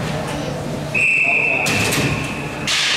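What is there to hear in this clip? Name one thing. A whistle blows sharply in a large echoing rink.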